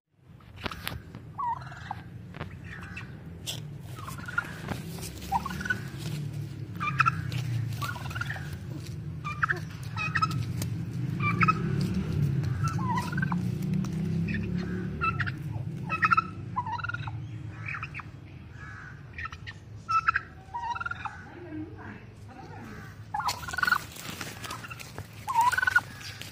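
Turkeys make short chirping calls close by.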